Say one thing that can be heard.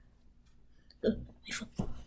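A hand taps on a phone lying on bedding.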